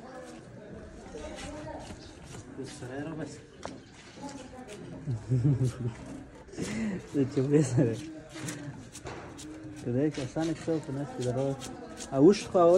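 Young men talk nearby with animation.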